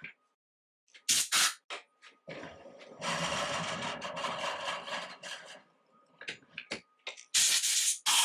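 Metal parts of a lathe clank and scrape as they are adjusted.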